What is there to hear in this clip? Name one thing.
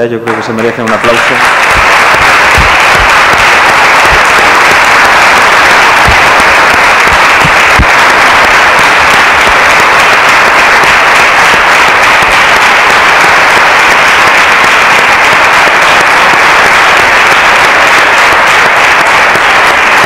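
A crowd applauds loudly and steadily.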